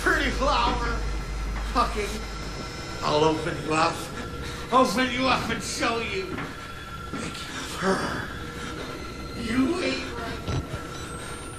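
A man mutters and taunts in a low, menacing voice from close by.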